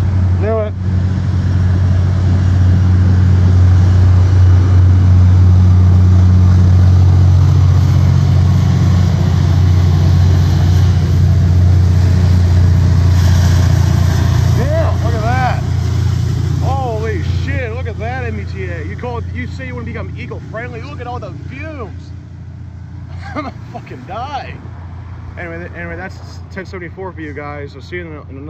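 A diesel train engine rumbles deeply nearby, then slowly fades.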